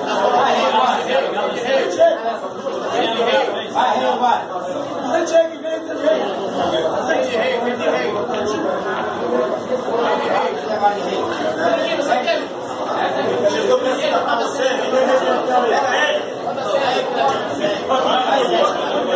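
A crowd of men chatters loudly all around, echoing in a hard-walled room.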